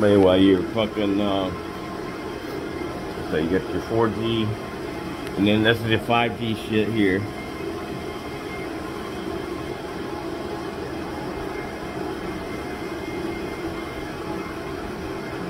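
Cooling fans hum steadily.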